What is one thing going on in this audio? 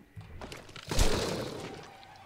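A pistol fires sharp, loud shots.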